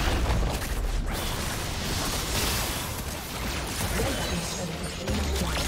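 Game spell effects crackle and clash during a fight.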